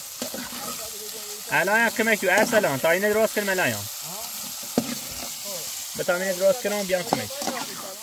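A metal utensil scrapes and clinks against a pan.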